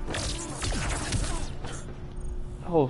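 Punches and blasts crash loudly in a fight.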